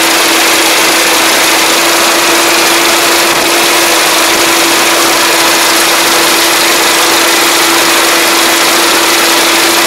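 A diesel combine harvester runs while it cuts rice.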